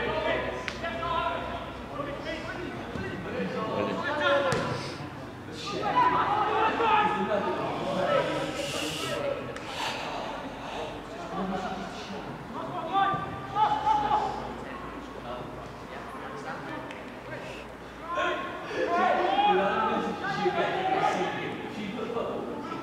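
Football players shout to each other across an open field.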